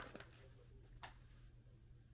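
A small dog snaps up a treat from a hand.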